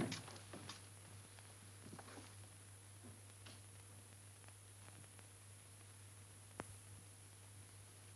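A heavy canvas bag rustles as it is handled.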